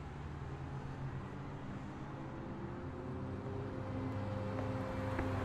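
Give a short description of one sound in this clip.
Traffic hums steadily along a city street.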